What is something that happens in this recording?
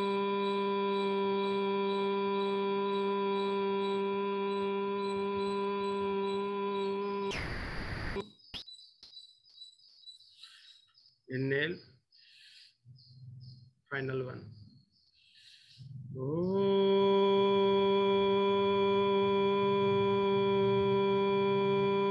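A man chants a long, steady hum nearby.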